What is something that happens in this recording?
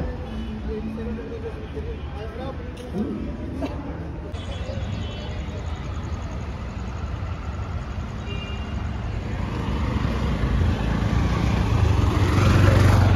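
Traffic hums steadily along a city street.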